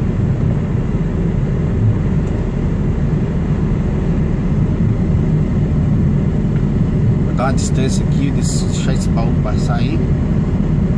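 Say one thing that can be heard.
A truck engine rumbles steadily close by.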